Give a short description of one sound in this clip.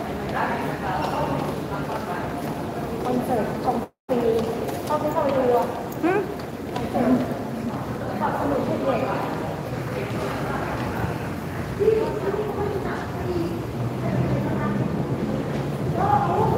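Stroller wheels rattle over a hard floor.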